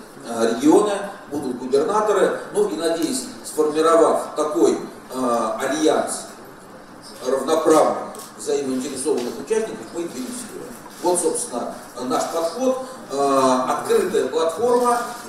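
A middle-aged man speaks with animation into a microphone, pausing now and then.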